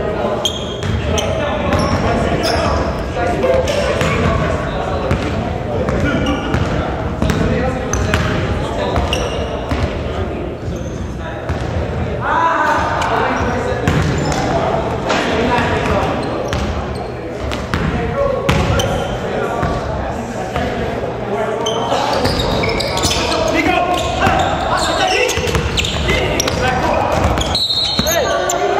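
Young men call out to each other in an echoing gym.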